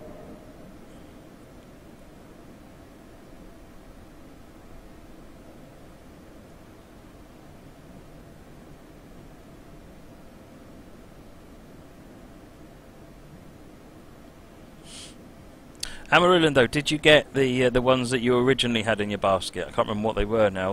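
A train rumbles steadily through a tunnel.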